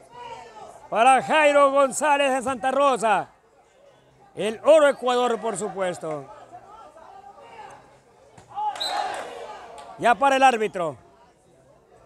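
A crowd of men shouts and cheers loudly outdoors.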